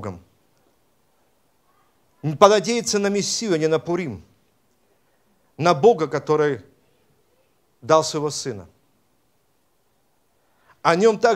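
A middle-aged man speaks slowly and solemnly into a microphone, with pauses between phrases.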